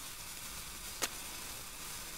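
A flare is struck and flares up with a sharp crack.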